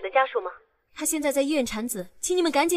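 A young woman speaks calmly over a phone.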